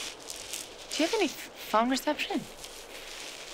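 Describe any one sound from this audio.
A woman calls out loudly nearby.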